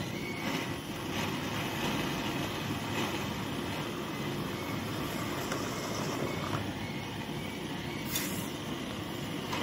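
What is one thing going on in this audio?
Hot metal sizzles and bubbles in water.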